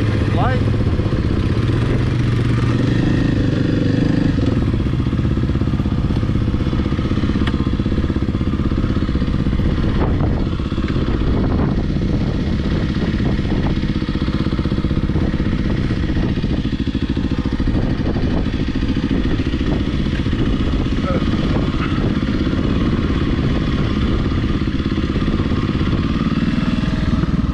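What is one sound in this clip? A dirt bike engine drones and buzzes up close.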